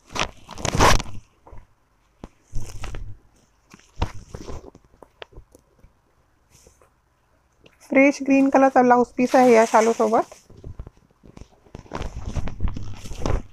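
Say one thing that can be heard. Silk fabric rustles as it is unfolded.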